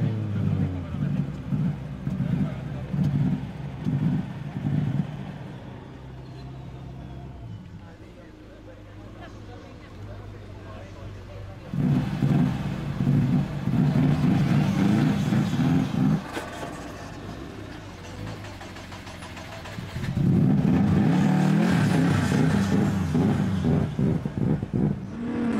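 A rally car engine idles and revs up loudly close by.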